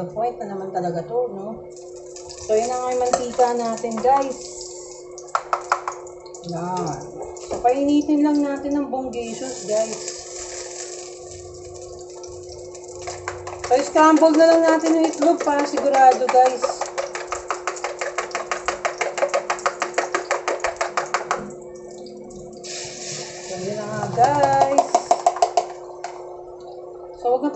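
Oil sizzles softly in a hot pan.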